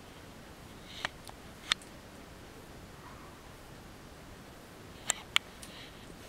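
A small dog gives short, sharp yaps.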